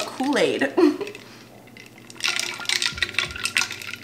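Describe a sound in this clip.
A metal spoon clinks against a glass as it stirs.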